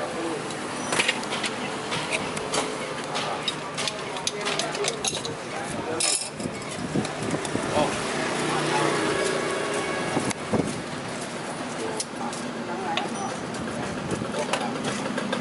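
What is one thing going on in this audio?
Metal cups and spoons clink and clatter.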